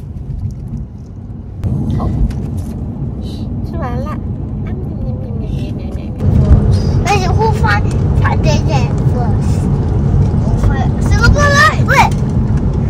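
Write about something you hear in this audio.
A car engine rumbles steadily inside a moving car.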